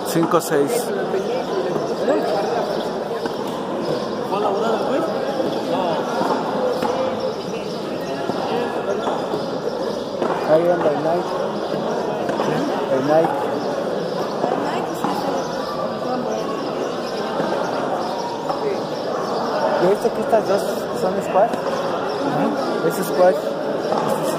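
A bare hand slaps a hard ball.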